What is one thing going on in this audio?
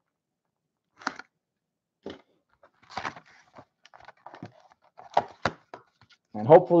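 Cardboard rustles and snaps as a box is opened by hand.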